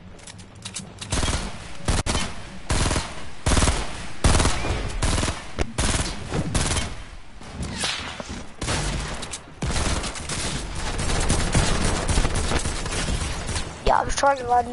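Gunshots fire in rapid, repeated bursts.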